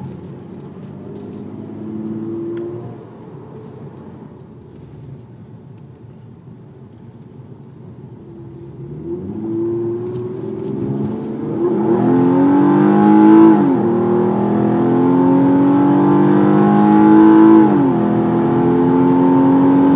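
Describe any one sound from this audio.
A car engine revs and roars loudly as the car accelerates hard through the gears.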